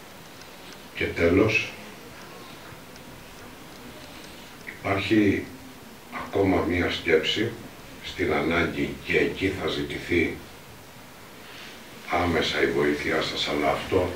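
An elderly man speaks calmly into a microphone, in pauses.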